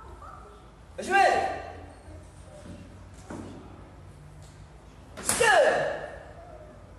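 A young man shouts loudly and sharply.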